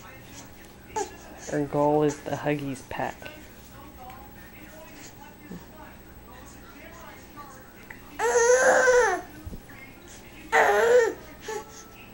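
A baby babbles and squeals loudly up close.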